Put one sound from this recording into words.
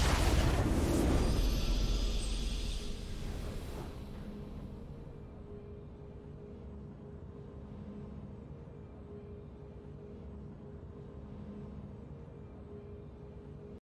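A triumphant game fanfare swells and fades into a low hum.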